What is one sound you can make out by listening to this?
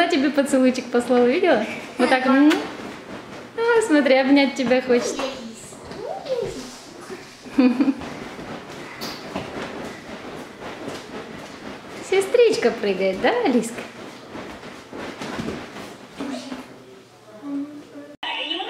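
A toddler babbles and shrieks.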